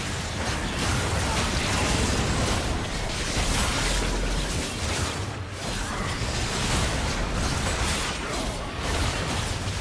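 Game spell effects crackle and whoosh in a fight.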